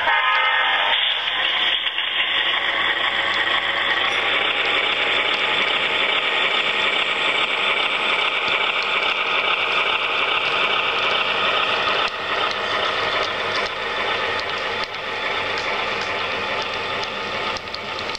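A model train's motor hums steadily as the train rolls past.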